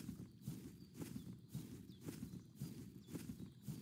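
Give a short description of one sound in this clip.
Leafy plants rustle as someone pushes through them.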